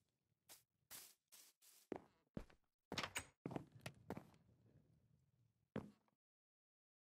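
Footsteps tap on wooden boards.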